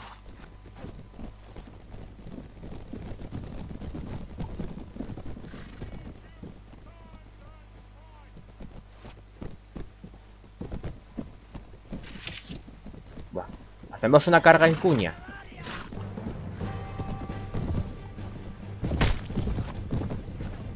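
Horses' hooves thud and clatter on snow.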